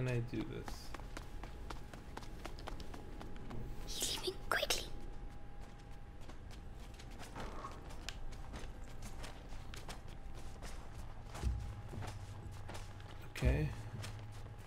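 Footsteps crunch quickly on snow and stone.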